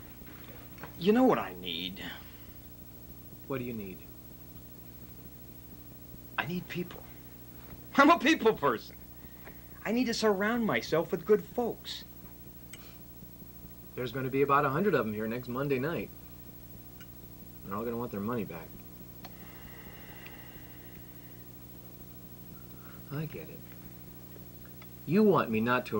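A middle-aged man speaks calmly and haltingly, close by, with pauses.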